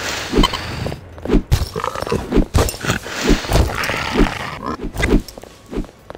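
Fists punch and thump against a body.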